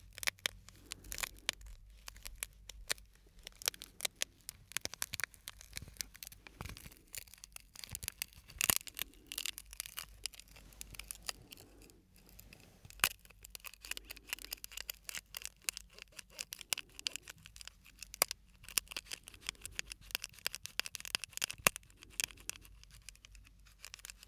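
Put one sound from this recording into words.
Close up, a small plastic packet crinkles and taps between fingers.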